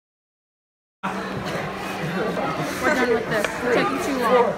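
Young men and a young woman laugh close by.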